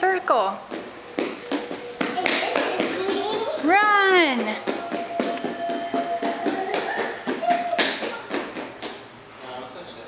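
Small feet patter and stamp on a hard floor.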